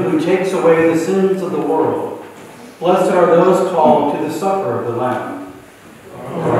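A middle-aged man chants slowly in an echoing hall.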